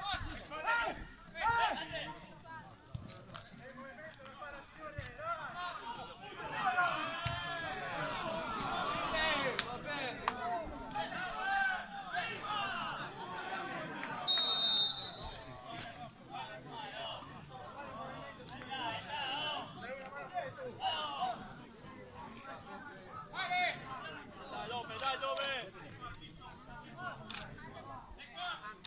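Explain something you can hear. Men shout to each other in the distance outdoors.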